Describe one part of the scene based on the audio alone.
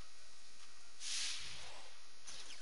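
A short whoosh sweeps past.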